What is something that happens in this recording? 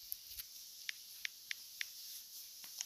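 Touchscreen keyboard keys click in quick taps.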